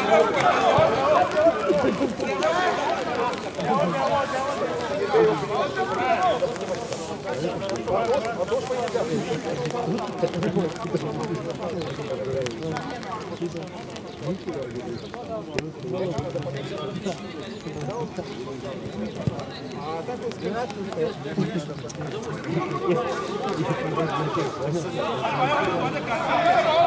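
Several young people chatter and talk among themselves outdoors, close by.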